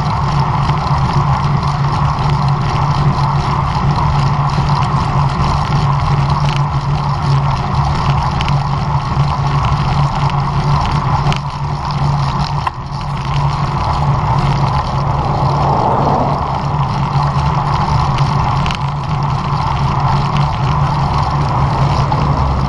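Wind buffets loudly against a microphone while cycling outdoors.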